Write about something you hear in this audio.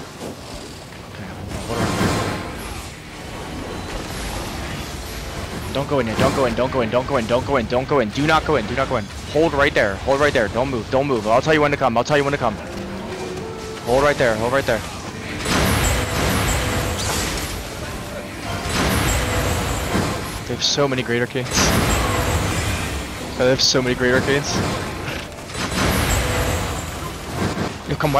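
Spells and battle effects crackle and boom in a crowded fight.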